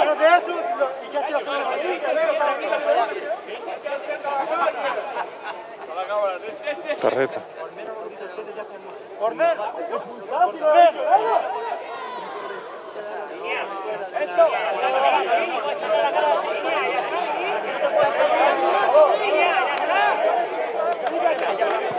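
Young players shout and call out to each other across an outdoor field.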